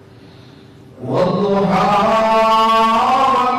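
An elderly man chants loudly into a microphone in a slow, drawn-out voice.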